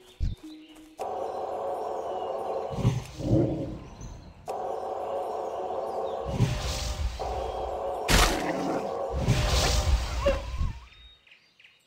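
A spell hums and crackles as it is cast.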